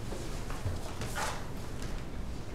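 A paper folder rustles as it is handed over.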